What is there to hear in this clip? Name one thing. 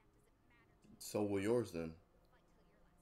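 A young man speaks briefly and loudly, close to a microphone.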